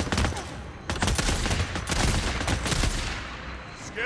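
Rifle shots crack in rapid bursts.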